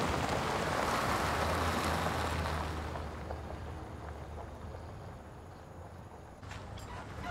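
Wind blows across open ground.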